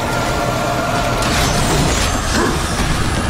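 A bright magical blast bursts with a crackle.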